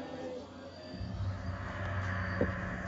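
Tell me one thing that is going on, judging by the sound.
Thunder rumbles loudly nearby.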